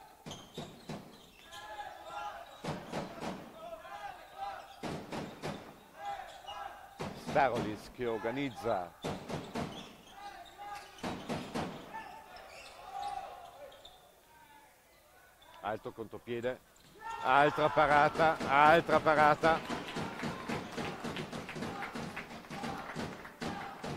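A ball bounces on a hard indoor court.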